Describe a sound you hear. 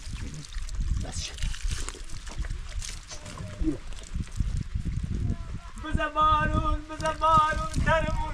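Water pours from a jug and splashes onto the ground.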